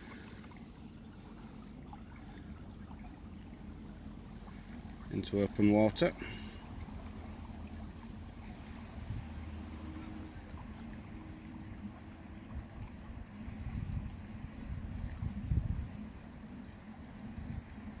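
A small boat motor hums faintly across the water.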